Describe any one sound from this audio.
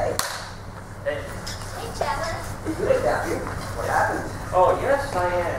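Young men and a young woman talk and call out with animation in an echoing hall.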